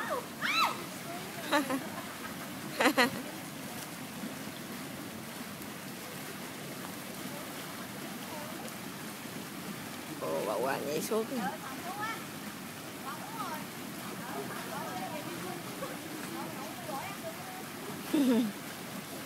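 Water churns and splashes steadily from a pool jet.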